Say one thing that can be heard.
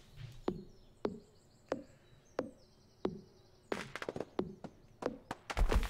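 An axe chops into a tree with sharp thuds.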